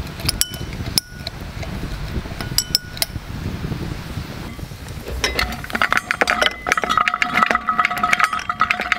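Ice cubes clink against a glass as a drink is stirred.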